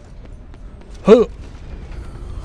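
A man grunts with effort while climbing.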